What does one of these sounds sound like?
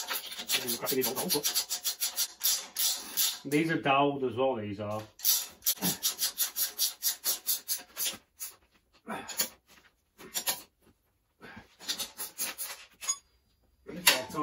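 A ratchet wrench clicks rapidly in quick bursts.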